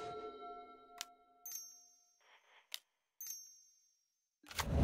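Short chiming game sound effects ring out.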